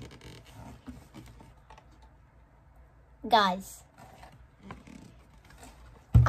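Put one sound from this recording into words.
Cardboard and paper rustle as a box is opened.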